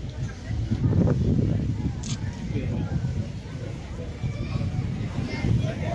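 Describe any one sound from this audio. A large crowd murmurs outdoors.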